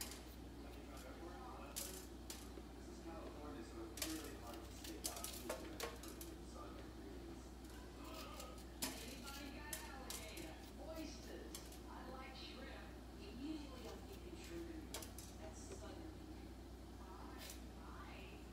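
Small clicks and taps sound as vegetables are handled and peeled.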